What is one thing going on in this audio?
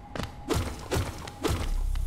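Stones crumble and clatter down.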